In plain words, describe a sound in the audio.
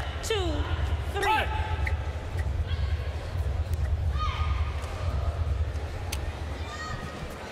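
A crowd cheers and applauds in a large echoing arena.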